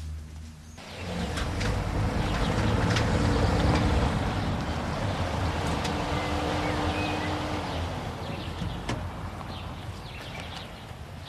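A car engine hums as the car rolls slowly past.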